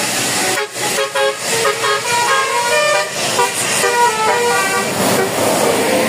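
A bus horn plays a quick tooting melody.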